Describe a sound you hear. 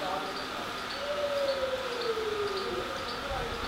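A cow lows briefly.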